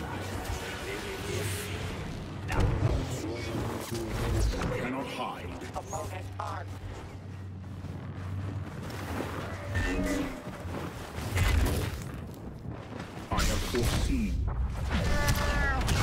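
Blaster shots zap in quick bursts.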